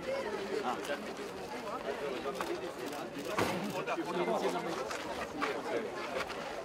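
A crowd of men chatter nearby outdoors.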